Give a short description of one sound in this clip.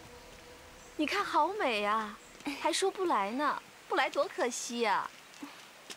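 A young woman speaks cheerfully and with animation.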